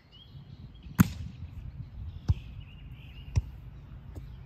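A volleyball thumps against hands.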